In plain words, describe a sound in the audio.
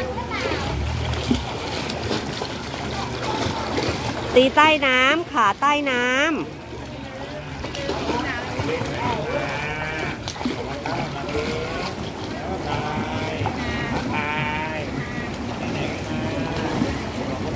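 Water splashes as a child kicks while floating.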